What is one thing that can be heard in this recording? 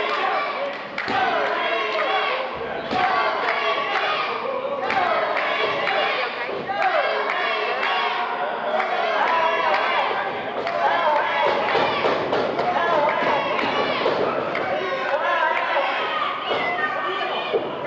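A crowd of spectators shouts and cheers in an echoing hall.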